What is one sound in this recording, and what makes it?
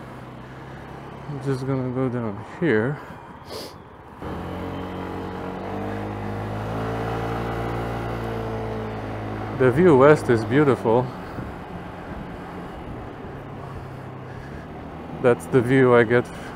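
A motorcycle engine hums steadily as the bike rides along, its pitch rising and then settling.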